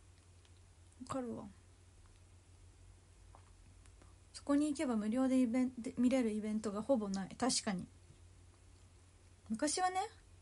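A young woman speaks calmly and close up.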